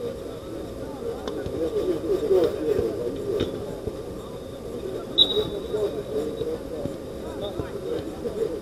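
Men shout and call to each other across an outdoor pitch.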